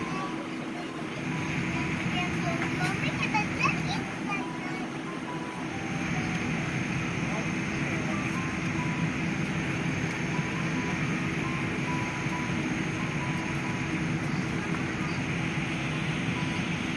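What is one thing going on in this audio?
An airplane cabin hums with a steady low engine roar.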